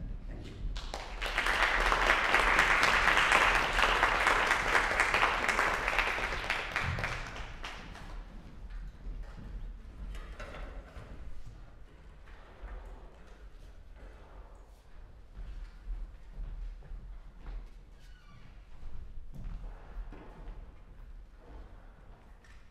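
Footsteps thud on a wooden stage in a large echoing hall.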